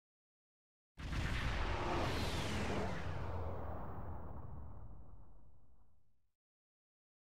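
A spaceship engine roars and whooshes in a long, falling sweep that slowly fades.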